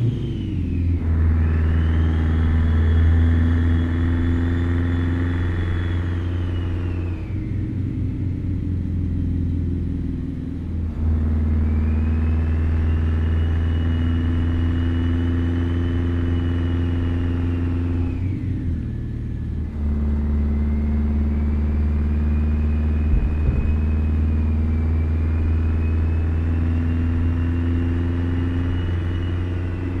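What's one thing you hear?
A truck's diesel engine drones steadily, rising and falling in pitch as the gears change.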